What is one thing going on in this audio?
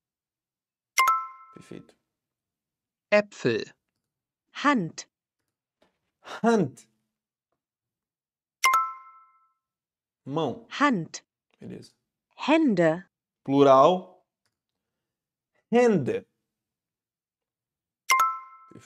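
A short bright chime rings several times.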